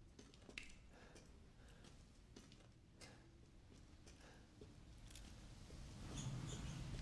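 A man talks quietly into a close microphone.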